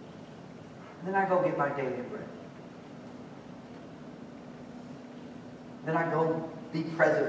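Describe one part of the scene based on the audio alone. A young man speaks calmly into a microphone, pausing between phrases.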